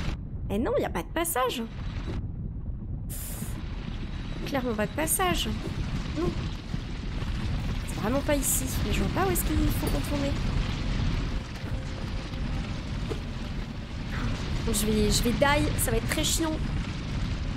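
A young woman talks casually and close to a microphone.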